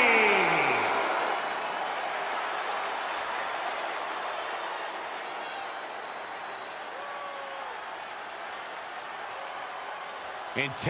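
A large arena crowd cheers loudly and slowly dies down.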